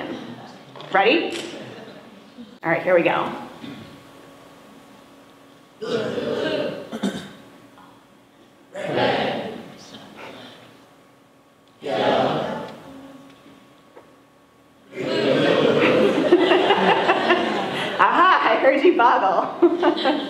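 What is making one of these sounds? A woman speaks clearly into a microphone in an echoing hall, in short bursts with pauses.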